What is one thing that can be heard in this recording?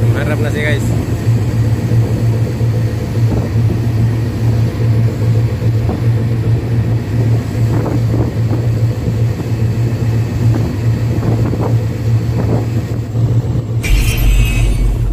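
Propeller wash churns in the water behind a tugboat.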